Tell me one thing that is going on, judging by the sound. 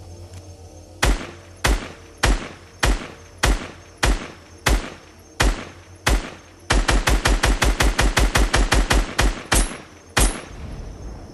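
A rifle fires shots in quick bursts, loud and sharp.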